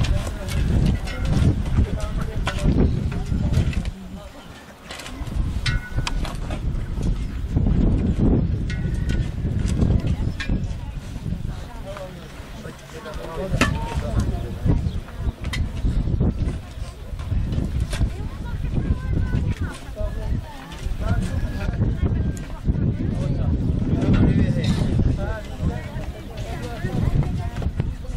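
A crowd of men and women murmurs and talks nearby outdoors.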